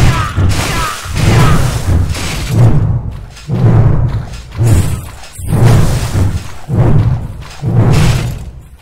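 Swords swing and strike repeatedly in a fight.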